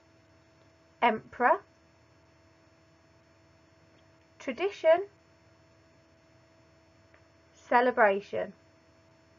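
A woman speaks slowly and clearly in short phrases, close to a microphone.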